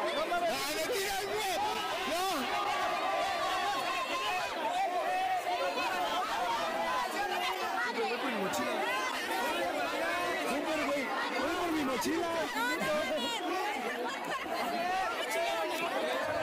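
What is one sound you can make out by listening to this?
A crowd of young men shouts and chants loudly nearby.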